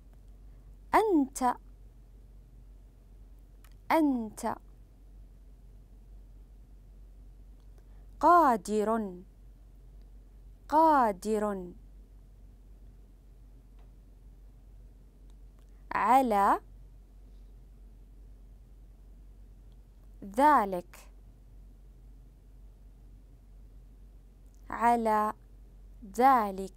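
A woman speaks slowly and clearly into a microphone, in short phrases with long pauses.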